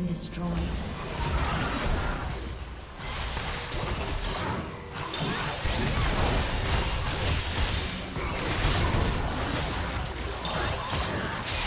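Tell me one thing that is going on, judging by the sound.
Magic spells crackle and burst as a fight rages.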